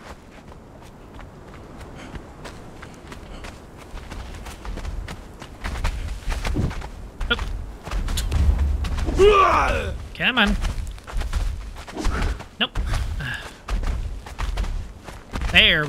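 Footsteps run over sand.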